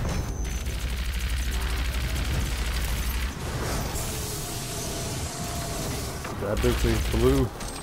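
An energy gun fires in rapid bursts.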